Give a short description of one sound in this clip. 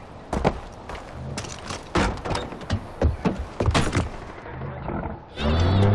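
A truck door clunks open and shut.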